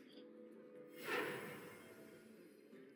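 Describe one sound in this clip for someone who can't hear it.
A soft magical whoosh sounds as a card is played.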